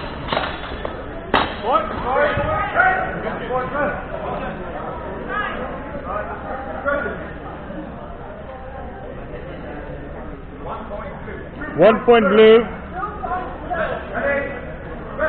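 Men and women talk and call out in a large echoing hall.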